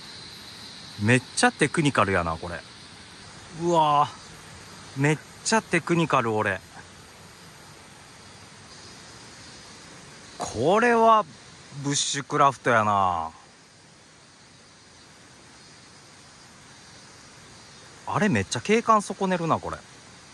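A man talks with animation close to the microphone, in short bursts.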